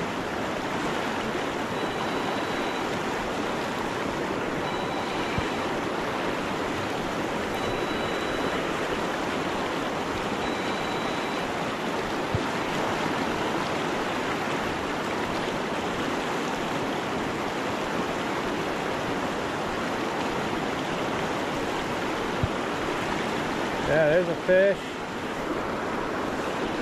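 A fast river rushes and splashes steadily over rocks close by.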